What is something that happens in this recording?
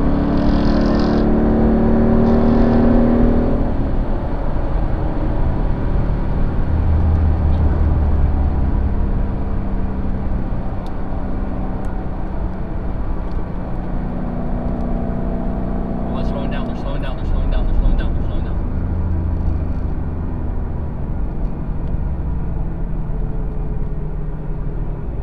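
A car engine roars steadily from inside the cabin at racing speed.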